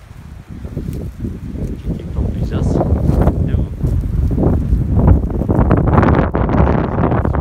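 An elderly man talks nearby outdoors.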